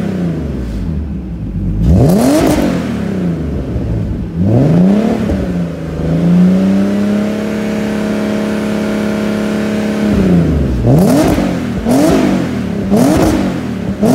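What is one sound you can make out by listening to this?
A car engine idles with a deep exhaust rumble, revving sharply several times.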